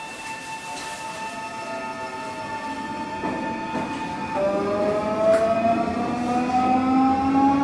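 An electric train idles with a steady, high electric whine.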